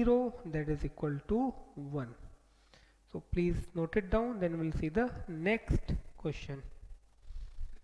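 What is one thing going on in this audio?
A man speaks with animation through a close microphone.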